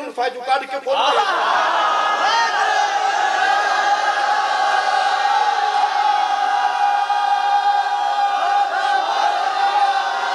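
A large crowd chants together in a steady, sustained drone.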